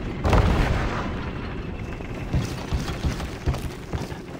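Footsteps thud on creaking wooden boards.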